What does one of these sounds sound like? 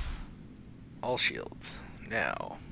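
Laser shots zap in quick bursts.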